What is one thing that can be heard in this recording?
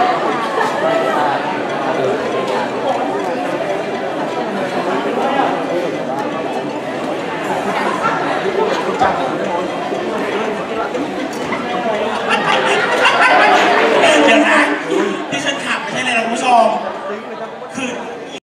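A crowd of people chatters and cheers in a large hall.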